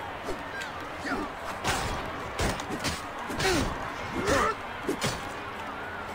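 A man grunts with effort as he fights.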